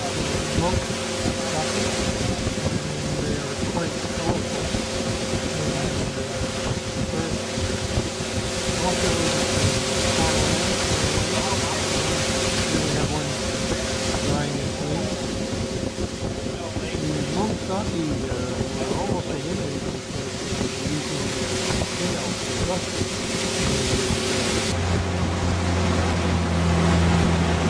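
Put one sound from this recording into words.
A boat's outboard motor drones steadily.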